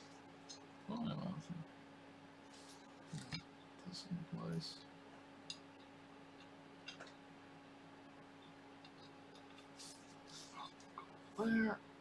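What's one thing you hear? Small metal parts click and clink against a metal plate.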